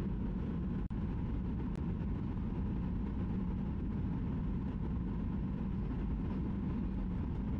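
Jet engines roar steadily in a low, constant drone.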